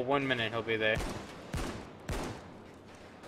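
Gunshots bang sharply a few times.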